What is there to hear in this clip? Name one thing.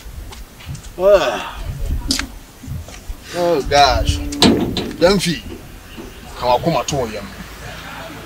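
A second man answers close by.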